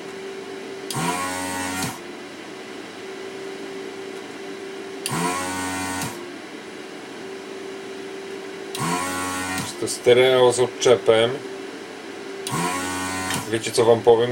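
An electric screwdriver whirs in short bursts.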